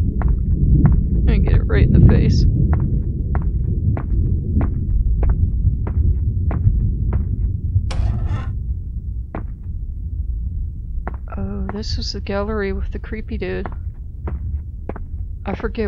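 Footsteps thud at a steady walking pace on a hard floor.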